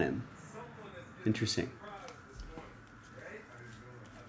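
Trading cards rustle and slide as hands sort through them.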